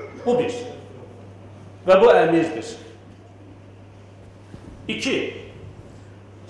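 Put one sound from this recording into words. A man speaks through a microphone in short phrases, with pauses, in an echoing hall.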